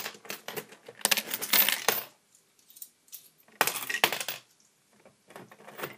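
Metal coins clink and rattle as they drop and pile up.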